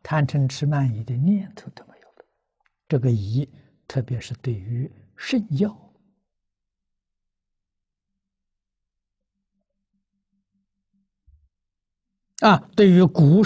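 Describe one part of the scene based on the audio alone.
An elderly man speaks calmly through a microphone, lecturing with long pauses.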